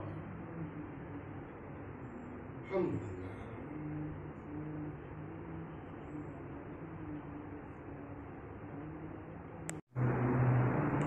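Ceiling fans whir steadily.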